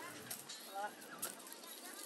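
Onions rattle into a plastic basket.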